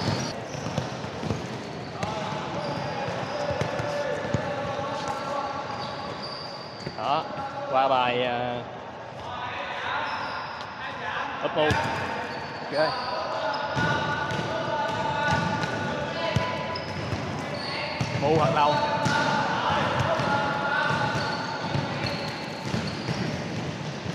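Young men shout to each other across a large echoing hall.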